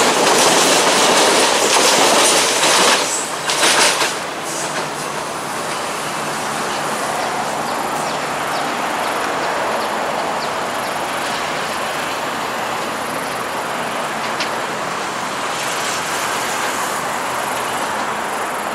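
An electric train rumbles along the tracks as it approaches.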